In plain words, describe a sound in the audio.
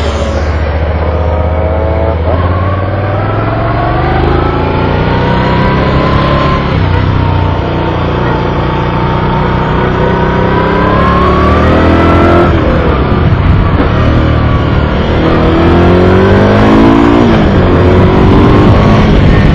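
A motorcycle engine roars close by, rising and falling in pitch as it shifts gears.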